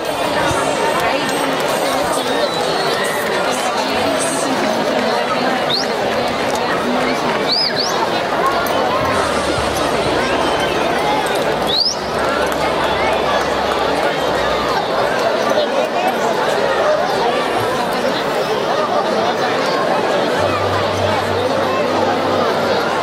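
A large crowd chatters and talks all at once, close by.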